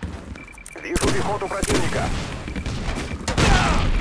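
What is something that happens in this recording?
Gunshots crack from a rifle in short bursts.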